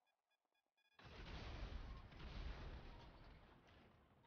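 A car explodes with a loud blast.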